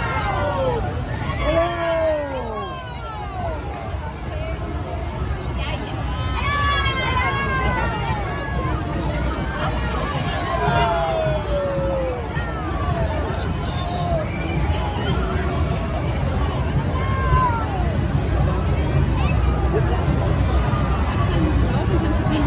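A crowd of men and women cheers and shouts outdoors.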